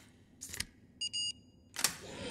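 An electronic lock beeps.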